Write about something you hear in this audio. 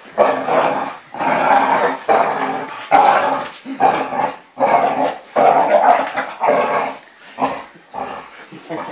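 A dog growls and grumbles playfully in loud bursts close by.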